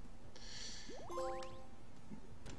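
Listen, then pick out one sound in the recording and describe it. A short chime of rising notes plays.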